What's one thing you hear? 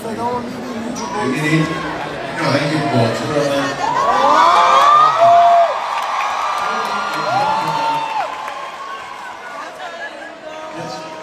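A man sings through loudspeakers in a large echoing hall.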